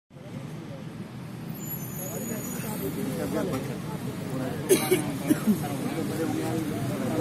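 A crowd of men murmurs and talks quietly nearby, outdoors.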